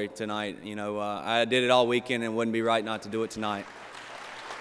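A young man speaks through a microphone in a large hall.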